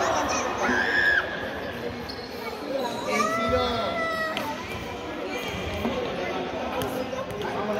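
A ball thumps as it is kicked.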